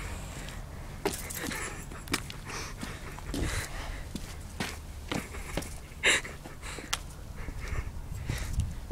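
Footsteps scuff on pavement outdoors.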